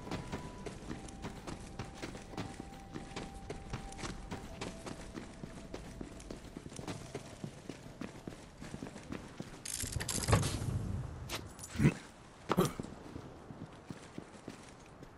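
Footsteps crunch steadily over rubble and gravel.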